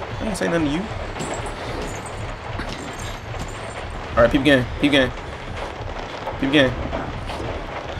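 A young man speaks into a close microphone in short, animated bursts.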